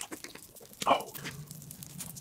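A young man makes a short exclamation, close to a microphone.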